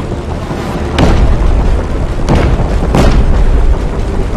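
Explosions boom loudly, one after another.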